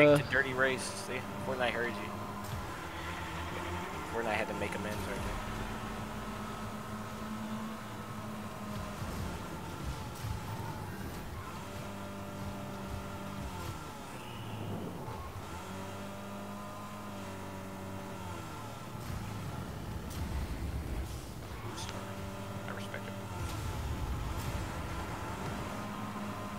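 A racing car engine hums and whines steadily.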